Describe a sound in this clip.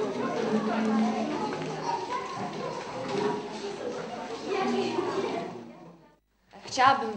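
Many young children chatter and talk over one another in a room.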